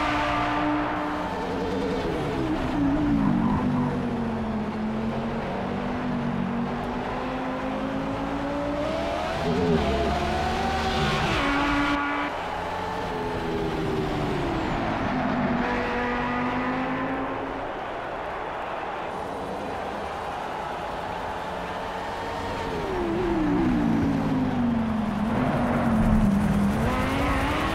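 A race car engine roars, rising and falling in pitch as it shifts gears.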